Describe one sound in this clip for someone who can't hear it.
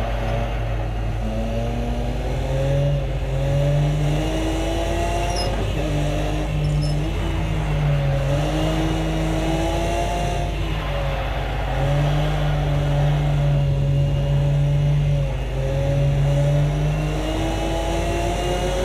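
A racing car engine roars, rising and falling in pitch as the car speeds up and shifts gears.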